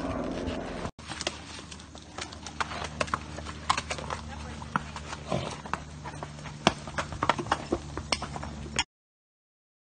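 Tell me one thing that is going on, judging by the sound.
Horse hooves clop and scrape on rocks.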